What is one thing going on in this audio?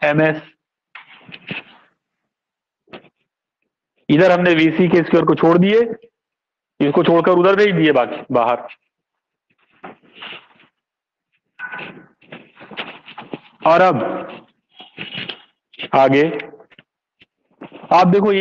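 A middle-aged man speaks in a lecturing tone, close to the microphone.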